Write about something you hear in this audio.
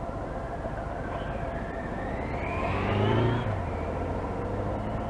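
A motorcycle rides by, its engine rising in pitch.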